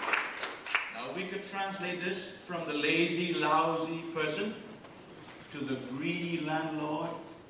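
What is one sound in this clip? An elderly man speaks with feeling into a microphone, in a large echoing hall.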